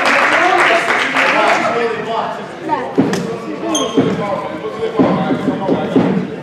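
A crowd of young people chatters and calls out in a large echoing gym.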